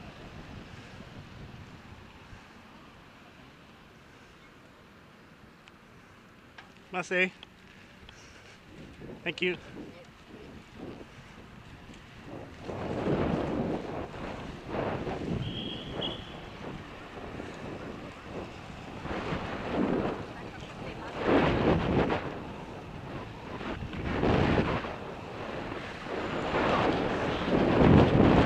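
Bicycle tyres hiss on a wet road.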